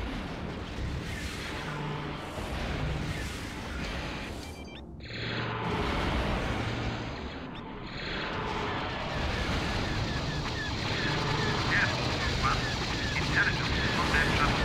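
A spacecraft engine hums steadily.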